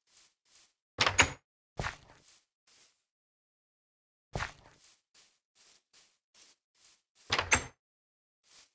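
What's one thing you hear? A wooden door swings open.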